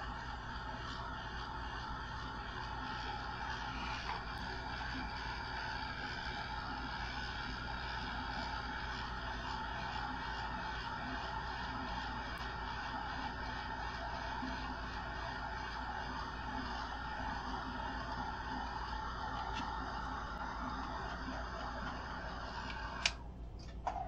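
A hair dryer blows steadily, then switches off.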